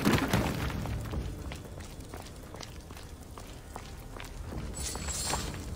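Footsteps tap on a stone floor.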